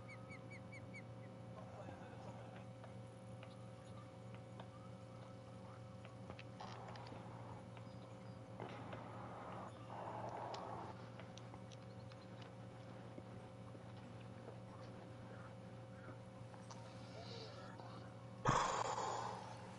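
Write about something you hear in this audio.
A fishing reel whirs as line is wound in.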